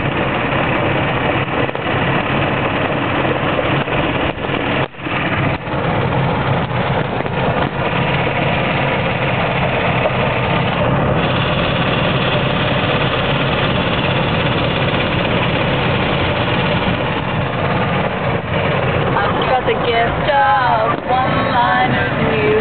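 A small cart motor hums steadily throughout.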